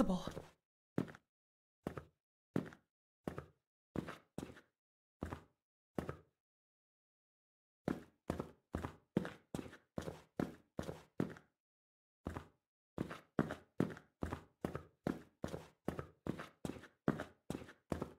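Footsteps thud slowly across a wooden floor, then quicken.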